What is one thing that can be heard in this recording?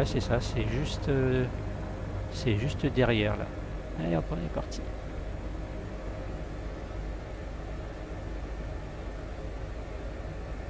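A helicopter engine hums steadily with a low drone.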